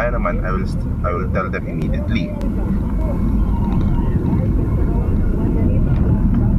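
A car engine rumbles steadily inside the cabin.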